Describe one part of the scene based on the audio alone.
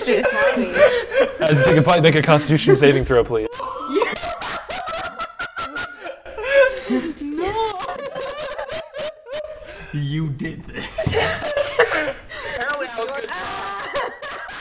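A young woman laughs and talks nearby.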